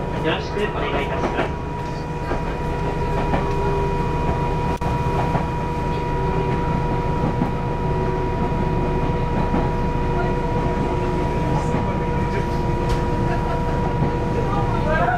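A vehicle rumbles steadily along a road.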